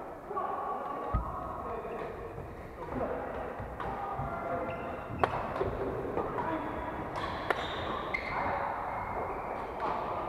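Players call out and talk across a large echoing hall.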